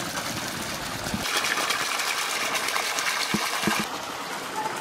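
Water gushes from a pipe and splashes onto wet ground.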